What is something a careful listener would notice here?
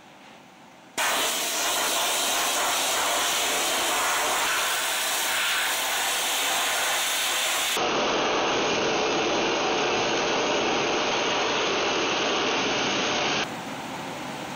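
A sandblaster hisses loudly and steadily.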